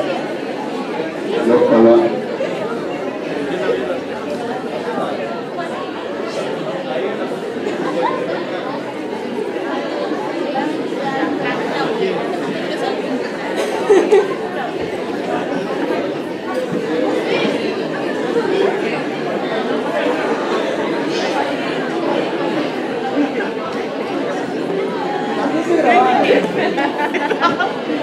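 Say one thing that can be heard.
A crowd of young people chatters at once in a room.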